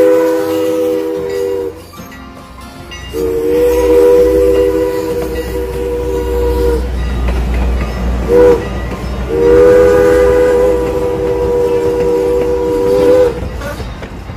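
A steam train whistle blows in long, loud blasts.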